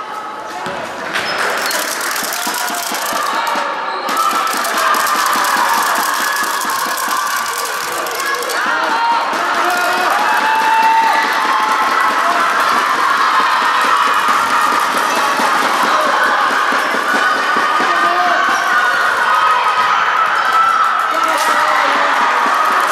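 Players and onlookers shout and call out in a large echoing hall.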